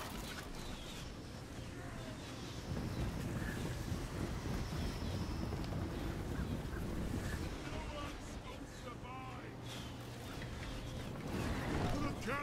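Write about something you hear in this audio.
Many soldiers march in a low, steady rumble of footsteps and clanking.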